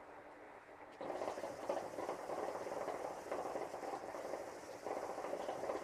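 Water bubbles steadily in a hookah.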